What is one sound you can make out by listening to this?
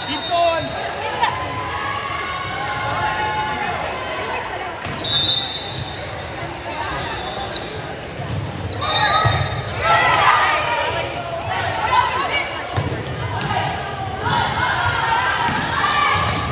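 Young women's voices call out and cheer in a large echoing gym.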